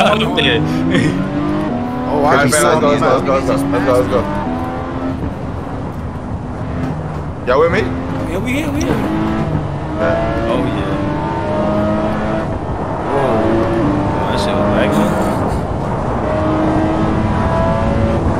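A car engine revs and shifts through gears.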